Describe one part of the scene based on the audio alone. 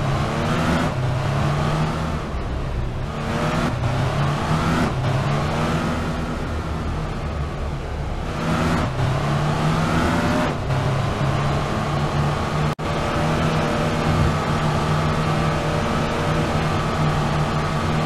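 A truck engine hums and revs, rising and falling in pitch as it shifts gears.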